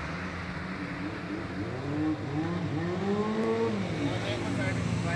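A motorcycle engine draws closer and revs up and down.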